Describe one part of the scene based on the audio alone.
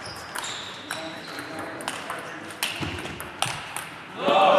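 A ping-pong ball clicks sharply off paddles and the table in an echoing hall.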